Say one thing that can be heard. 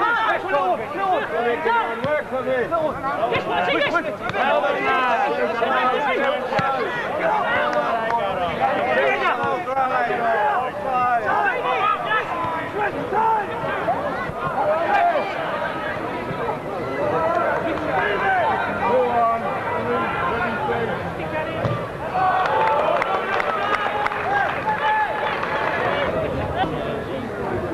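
A small crowd of men chatters and calls out outdoors.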